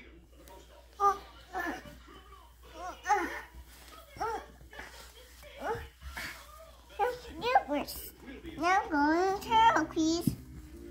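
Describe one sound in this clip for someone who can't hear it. A young child talks and squeals excitedly close by.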